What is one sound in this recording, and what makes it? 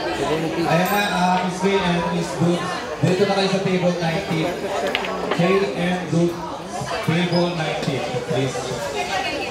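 A middle-aged man talks close to the microphone.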